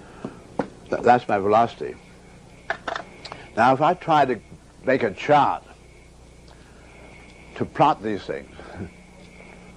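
An elderly man speaks calmly, as if lecturing.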